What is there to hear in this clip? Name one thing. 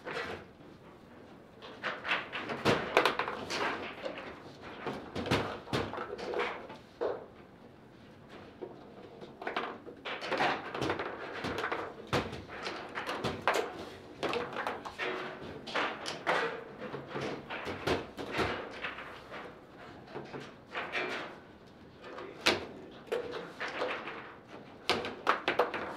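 A foosball ball clacks sharply against the rods and walls of the table.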